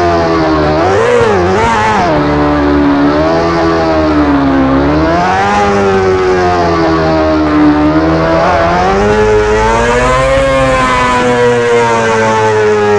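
A motorcycle engine revs up and down as it speeds along.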